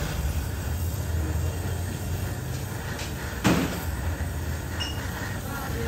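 A welding rod hisses against hot metal.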